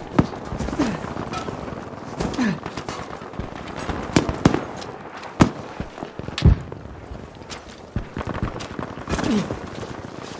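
Footsteps crunch over rubble and debris.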